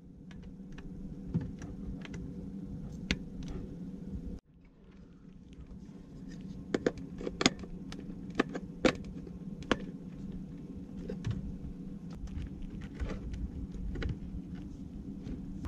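Hard plastic clicks and knocks as a small device is handled close by.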